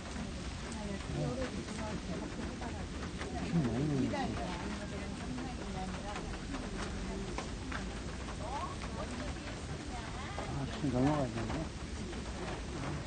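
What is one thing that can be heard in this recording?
A young man speaks quietly, close by.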